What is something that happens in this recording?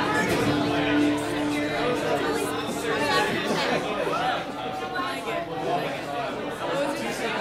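An acoustic guitar is strummed steadily.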